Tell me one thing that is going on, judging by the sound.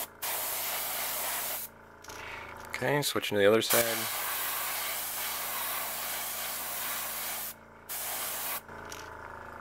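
An airbrush hisses in short and long bursts of spray.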